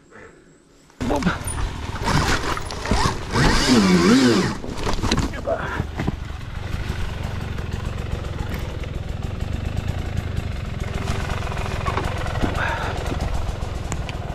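A dirt bike engine runs with a low, steady rumble.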